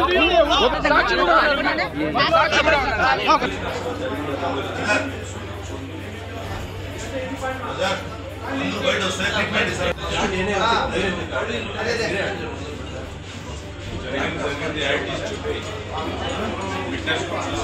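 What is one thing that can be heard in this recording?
A crowd of men and women talk over one another.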